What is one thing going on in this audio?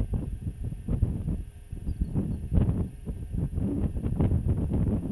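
Strong wind gusts roar and buffet across open ground outdoors.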